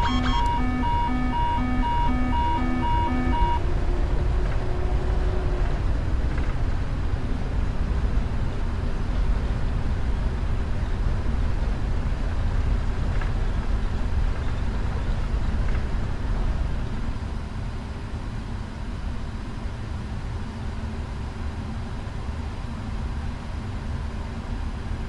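Jet engines roar steadily as an airliner speeds down a runway.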